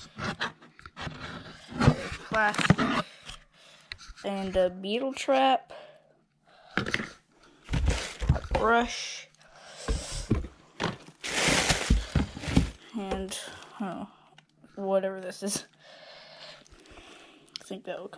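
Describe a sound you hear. Cardboard and plastic packaging rustle and crinkle.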